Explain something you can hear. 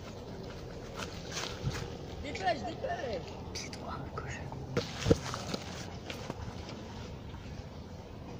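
Footsteps crunch on dry grass close by.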